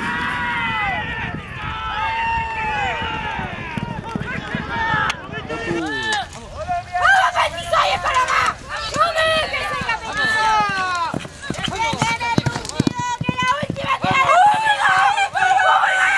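Horses' hooves pound on a dirt track at a gallop.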